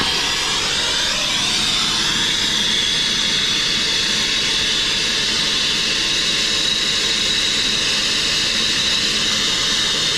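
A gas torch roars with a steady hiss close by.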